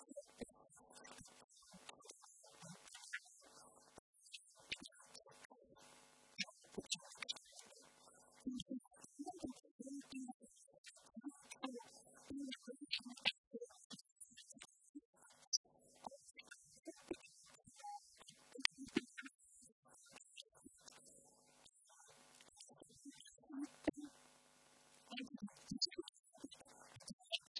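A woman speaks with animation through a handheld microphone in a hall.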